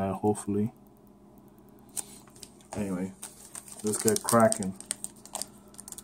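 A foil wrapper crinkles and rustles in a hand close by.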